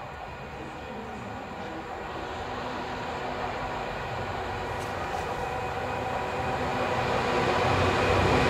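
A train approaches from a distance, slowly growing louder.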